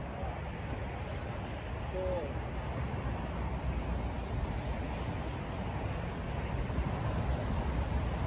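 Wind gusts and rumbles steadily across open ground.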